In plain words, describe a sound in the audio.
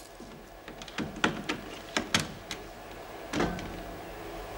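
A lock clicks and clacks as a key turns.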